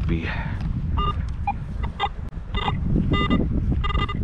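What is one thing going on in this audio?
A metal detector beeps in quick repeated tones.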